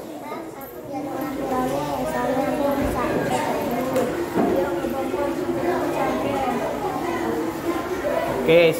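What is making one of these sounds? A second young boy answers nearby.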